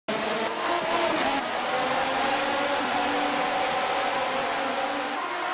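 Racing car engines scream at high revs as the cars speed past.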